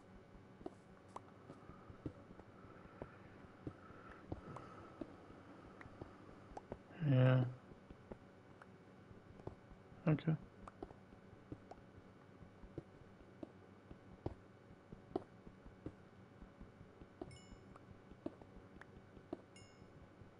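A pickaxe taps and chips at stone blocks in quick, soft knocks.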